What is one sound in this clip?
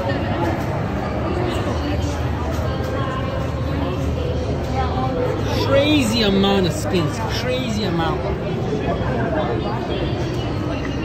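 A crowd of people chatters all around in a large, echoing hall.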